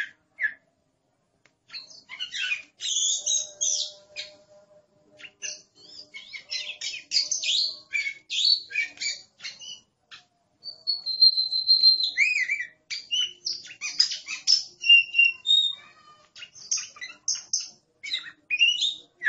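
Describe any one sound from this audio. A songbird sings a varied run of sweet whistles and chirps close by.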